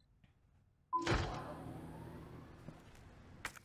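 An electronic beep sounds once, followed by a low hum.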